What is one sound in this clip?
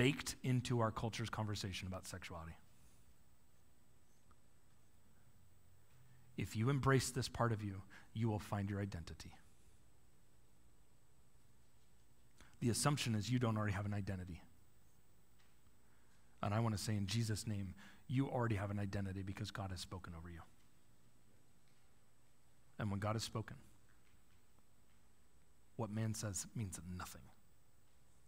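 A man speaks calmly through a microphone in short phrases with pauses.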